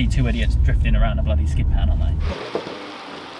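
A car engine hums low inside the cabin.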